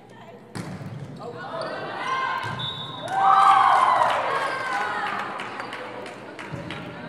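A crowd of young women cheers and shouts in a large echoing hall.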